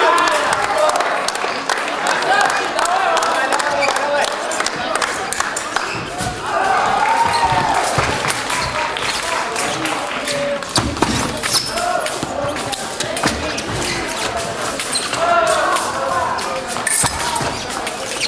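Fencers' shoes squeak and thud on the floor.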